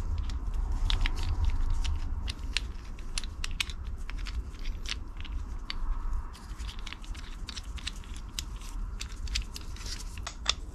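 Small plastic parts click and tap sharply as hands turn and fiddle with them.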